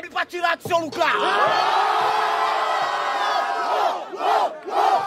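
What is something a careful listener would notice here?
A crowd roars and cheers loudly outdoors.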